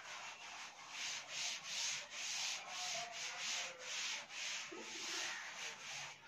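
A cloth eraser rubs back and forth across a blackboard.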